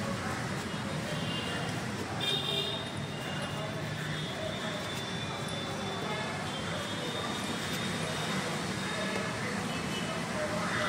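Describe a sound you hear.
A knife slices the rind off a pineapple with soft scraping cuts.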